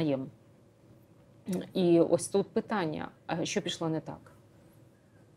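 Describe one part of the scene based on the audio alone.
A middle-aged woman speaks calmly into a close microphone.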